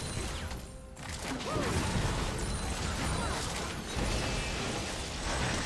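Fast game combat effects whoosh and clash.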